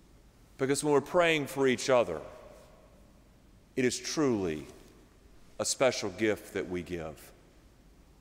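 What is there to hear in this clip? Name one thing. A middle-aged man speaks calmly through a microphone, with pauses between phrases.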